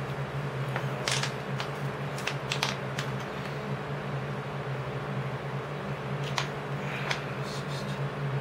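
A plastic bottle crinkles as it is squeezed.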